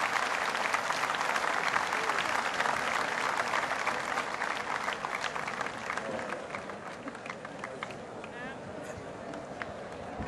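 A large crowd chatters and murmurs outdoors in the distance.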